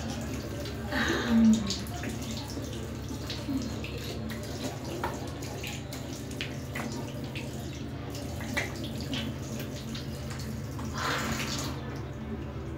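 Water splashes as hands rinse a face.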